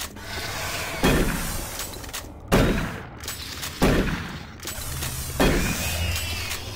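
A shotgun fires loud blasts several times.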